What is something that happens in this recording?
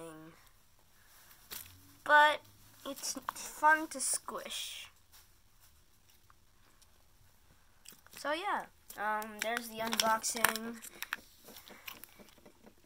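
Soft slime squishes and squelches between fingers.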